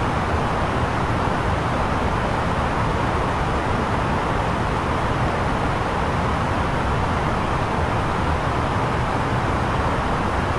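Jet engines drone steadily, heard from inside an aircraft cockpit.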